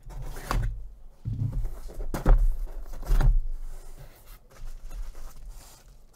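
A cardboard box scrapes and thumps on a table.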